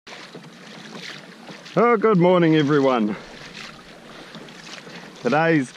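Water laps against a kayak's hull.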